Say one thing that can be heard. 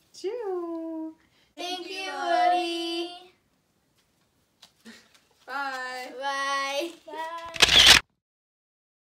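Young girls and a teenage girl sing and call out brightly together, close by.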